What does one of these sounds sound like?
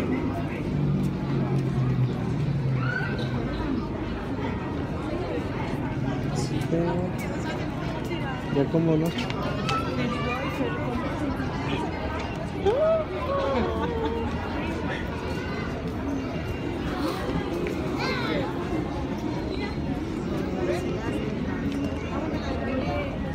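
A busy crowd murmurs and chatters outdoors all around.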